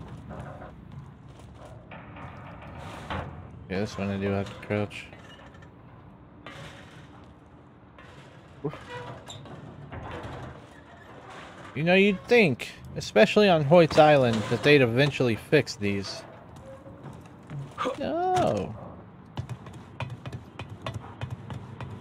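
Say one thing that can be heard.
Footsteps clank on a metal ladder.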